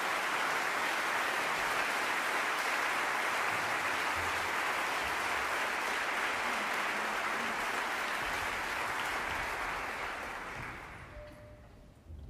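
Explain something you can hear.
An audience applauds loudly in a large hall, then the applause fades away.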